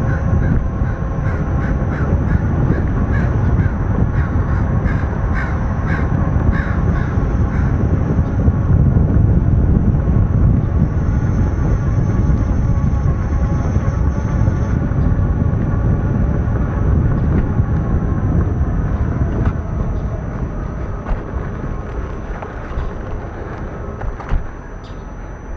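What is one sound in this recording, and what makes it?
An electric unicycle's motor whines steadily, its pitch shifting with speed.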